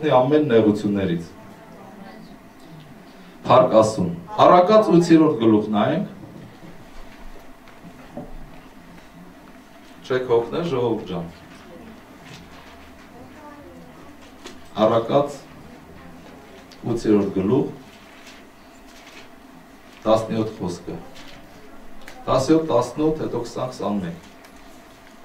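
A middle-aged man speaks slowly and earnestly into a microphone, with pauses between phrases.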